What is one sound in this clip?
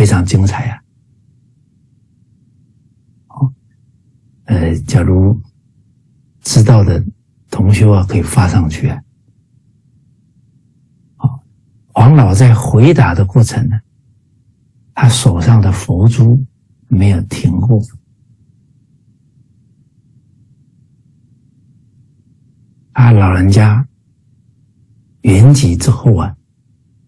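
A middle-aged man speaks calmly in short phrases over an online call, with pauses between them.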